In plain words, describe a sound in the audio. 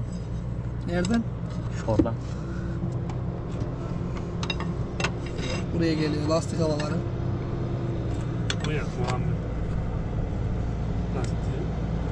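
A wrench clicks and clinks against metal engine parts.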